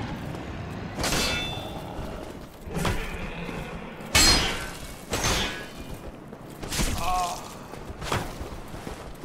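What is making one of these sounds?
An axe strikes with heavy thuds and metallic clangs.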